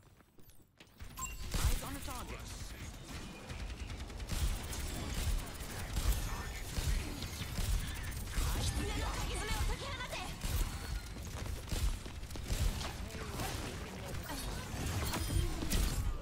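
Gunfire from a game rifle rattles in rapid bursts.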